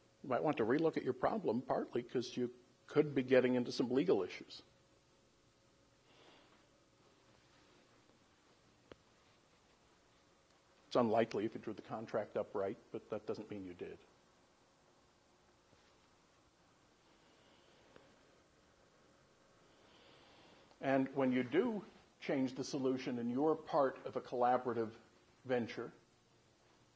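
A man speaks calmly through a microphone in a room, with pauses.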